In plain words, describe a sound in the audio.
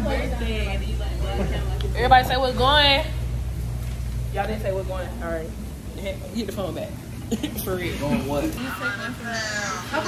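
Several women chatter in the background.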